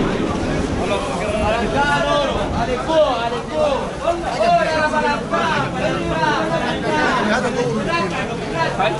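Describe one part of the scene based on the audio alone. A man's voice calls out loudly nearby, with animation.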